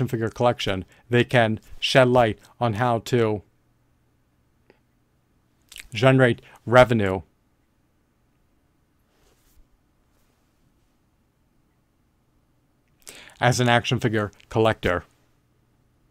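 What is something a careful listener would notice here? A young man speaks calmly and close to a microphone, in short bursts with long pauses.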